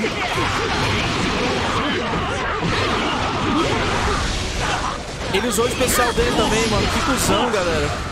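Crackling blasts of energy burst around the fighters.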